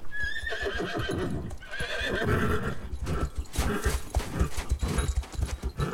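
Horse hooves thud on sand.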